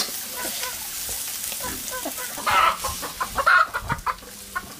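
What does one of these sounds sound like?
A metal spatula scrapes and clinks against a steel wok while stirring meat.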